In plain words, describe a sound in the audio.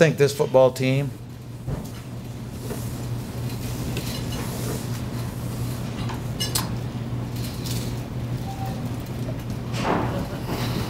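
A middle-aged man speaks calmly and briefly into a close microphone, pausing between words.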